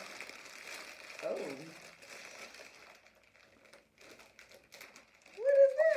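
Plastic wrapping crinkles in a young woman's hands.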